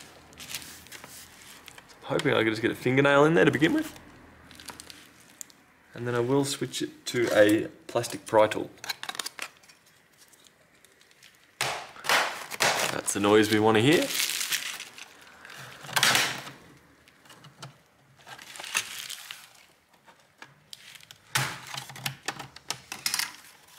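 Plastic parts creak and click as they are pried apart.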